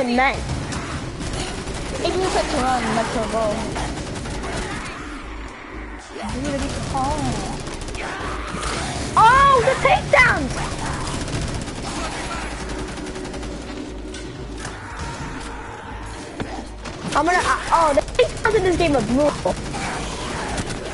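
Monsters shriek and snarl close by.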